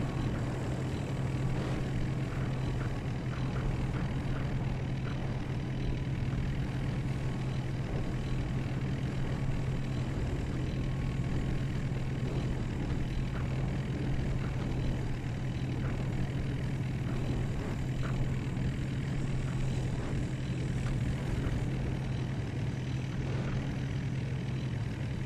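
Tank tracks clatter and rattle on the road.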